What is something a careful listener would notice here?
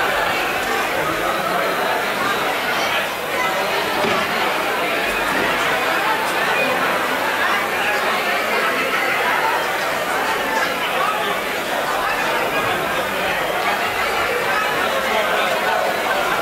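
Several men talk with each other nearby.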